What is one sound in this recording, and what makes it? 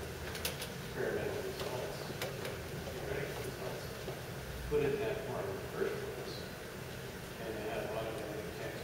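A man speaks calmly into a microphone in a large room with some echo.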